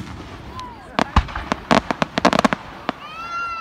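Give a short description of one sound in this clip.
Fireworks crackle in rapid pops.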